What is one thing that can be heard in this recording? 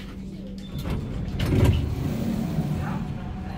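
A tram door slides open with a thump.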